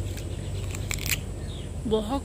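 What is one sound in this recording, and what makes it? A young woman bites into crunchy fruit.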